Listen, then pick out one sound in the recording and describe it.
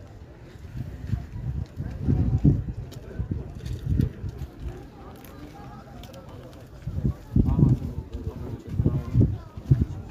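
Wind gusts buffet the microphone outdoors.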